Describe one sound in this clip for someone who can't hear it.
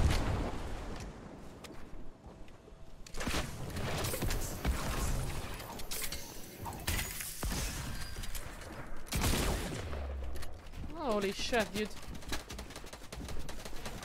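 Game building pieces clatter and thud in quick succession.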